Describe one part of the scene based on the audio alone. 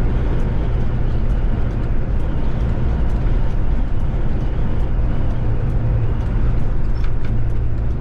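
Tyres roar on a wet road.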